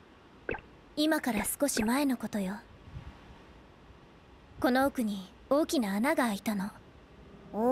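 A young woman speaks calmly.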